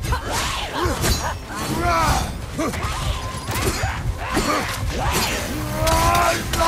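Heavy weapon blows thud and clang in a fight.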